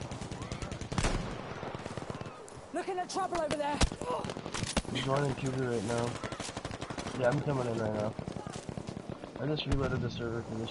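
A rifle fires loud, sharp single shots.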